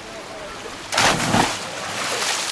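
A boy jumps into water with a big splash.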